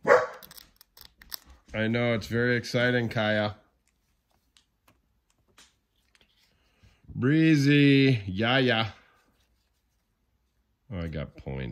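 Trading cards rustle and slide as they are handled.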